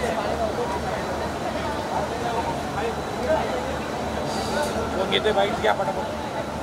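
A busy crowd chatters nearby.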